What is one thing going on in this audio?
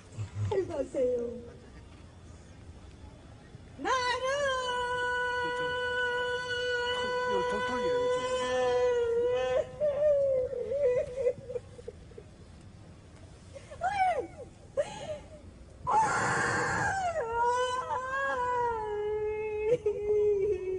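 A woman sings long, drawn-out notes through a microphone, her voice amplified outdoors.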